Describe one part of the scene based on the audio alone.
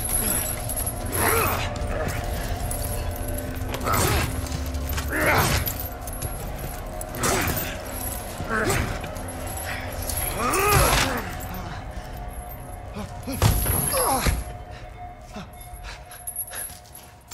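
Heavy metal chains rattle and clank.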